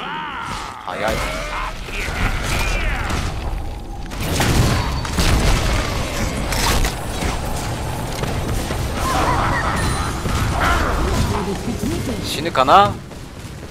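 Magic spell blasts whoosh and roar loudly.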